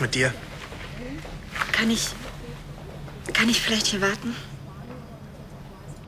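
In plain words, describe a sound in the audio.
A young woman speaks calmly in reply.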